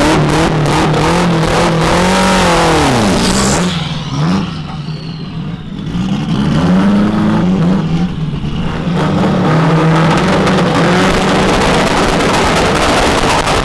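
A car engine idles roughly and revs up and down loudly nearby.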